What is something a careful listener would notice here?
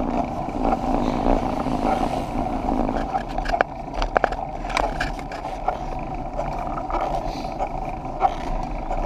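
Wind rushes and buffets steadily over a microphone outdoors.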